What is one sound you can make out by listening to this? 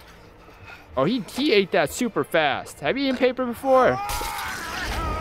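A man screams in agony.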